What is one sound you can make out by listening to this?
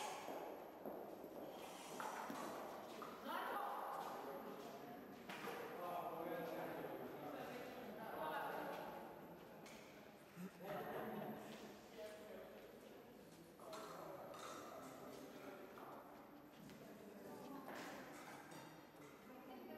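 Several men and women talk casually in a large echoing hall.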